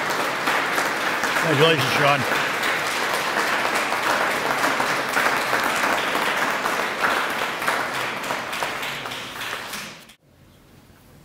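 A crowd applauds with steady clapping.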